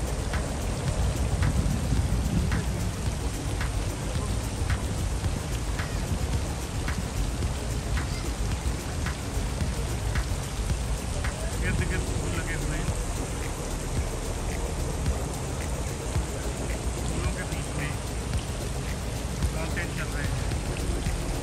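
Fountain jets splash steadily into a pool outdoors.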